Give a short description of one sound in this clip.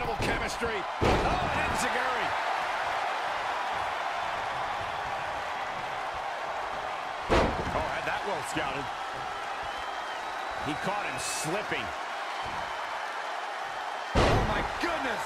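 A body slams down hard onto a wrestling mat with a heavy thud.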